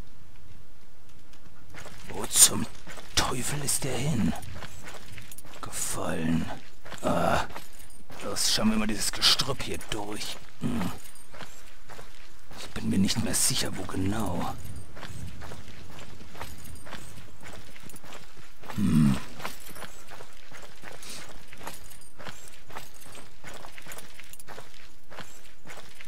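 Footsteps crunch through dry brush and leaves.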